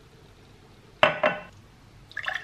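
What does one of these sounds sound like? A glass is set down on a hard counter with a knock.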